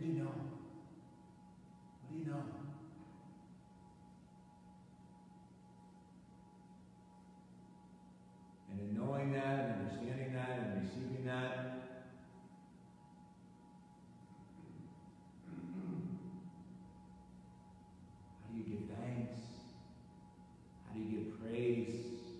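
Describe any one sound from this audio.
A man speaks slowly and solemnly into a microphone, with pauses, in an echoing room.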